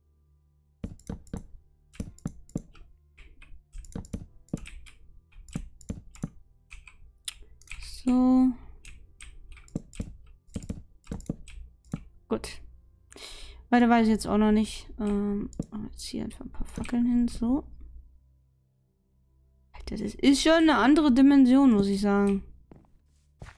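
Footsteps tap on wooden planks.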